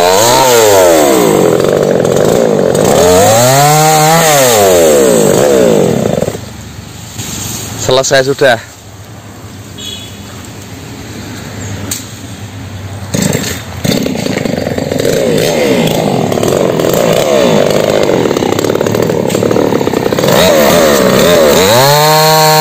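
A chainsaw engine revs up and down loudly close by.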